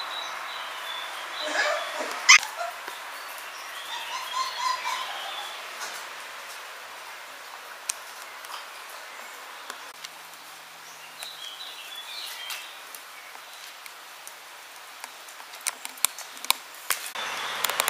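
Puppy claws click and scrabble on a tiled floor.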